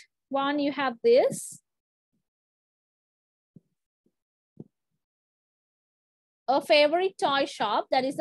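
A woman speaks clearly over an online call, pausing between phrases.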